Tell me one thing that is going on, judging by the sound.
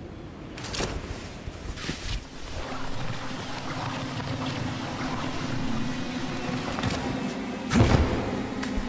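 A rope whirs steadily as someone slides down it.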